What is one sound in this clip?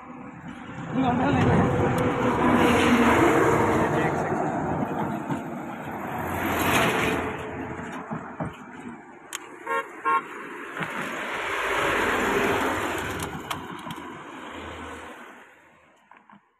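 Vehicles rush past one after another on a road nearby.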